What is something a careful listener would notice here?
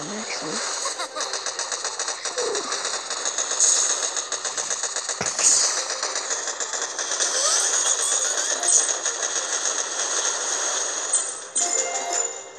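Rapid gunfire rattles in a battle.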